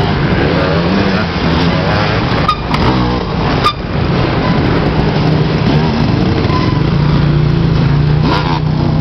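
A dirt bike engine revs loudly nearby, rising and falling in pitch.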